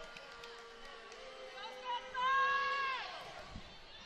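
A volleyball is struck hard with a slap.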